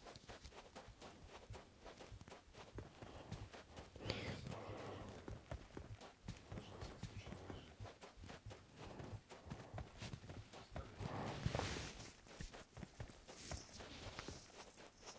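Footsteps crunch steadily on dry sand.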